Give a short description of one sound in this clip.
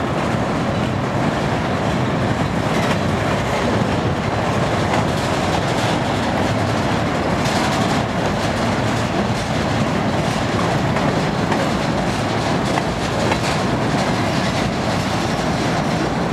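Freight cars roll past on steel wheels, rumbling on the rails.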